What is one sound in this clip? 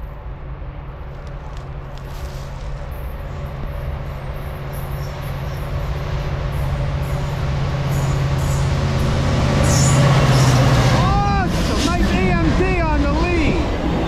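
A diesel locomotive approaches and roars past close by.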